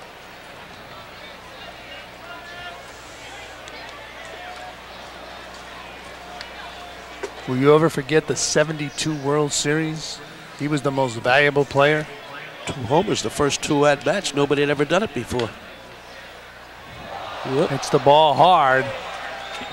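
A crowd murmurs in the stands of a stadium.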